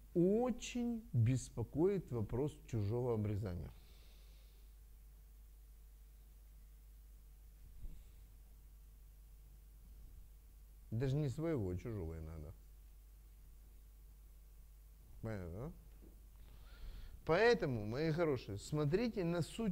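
A middle-aged man speaks calmly into a close microphone, with long pauses.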